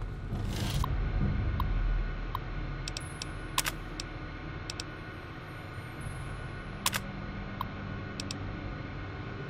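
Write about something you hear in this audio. An old computer terminal beeps and clicks.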